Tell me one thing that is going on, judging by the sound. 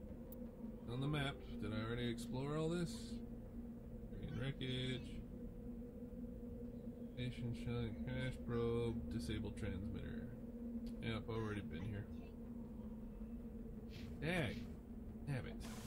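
Short electronic menu tones chirp and beep.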